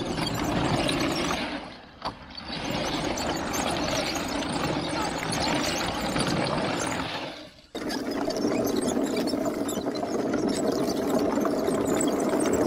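Wooden tracks clatter and rumble over concrete.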